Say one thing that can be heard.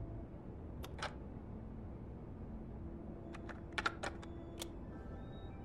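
A cassette player's buttons click.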